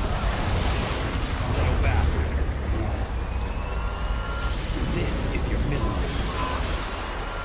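Energy blasts crackle and boom in a fast fight.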